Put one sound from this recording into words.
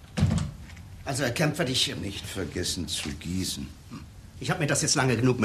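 An elderly man speaks with animation nearby.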